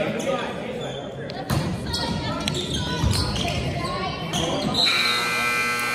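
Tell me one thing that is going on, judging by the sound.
Sneakers squeak on a hard floor in an echoing gym.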